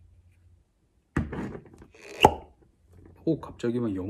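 A cork pops out of a glass bottle.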